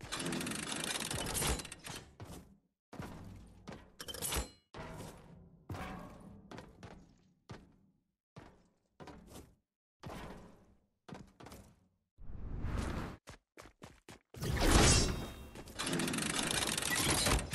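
A pickaxe strikes hard surfaces in quick, repeated blows.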